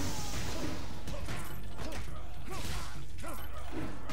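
A brawler punches with heavy thuds.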